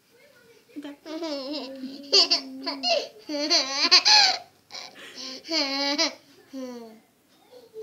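A small child laughs close by.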